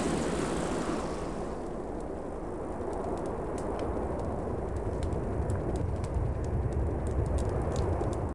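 A fire crackles and roars close by.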